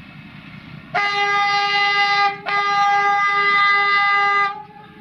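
A locomotive horn blares in two long blasts.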